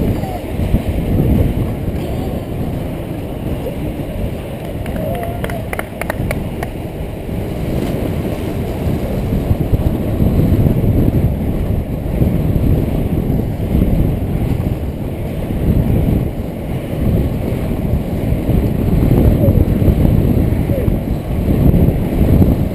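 Inline speed skates roll and stroke on asphalt.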